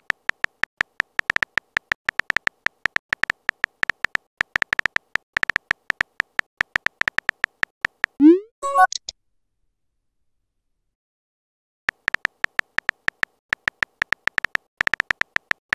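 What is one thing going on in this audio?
Keyboard keys click quickly in a steady typing rhythm.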